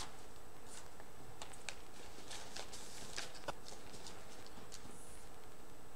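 Paper rustles as a young woman handles cards.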